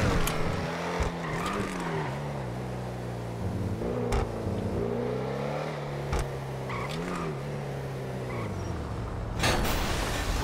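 A car engine hums and revs, rising and falling in pitch.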